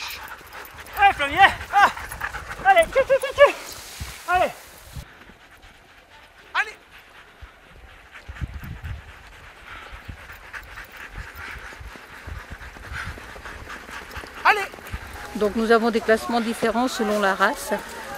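Sled dogs bark and yelp excitedly.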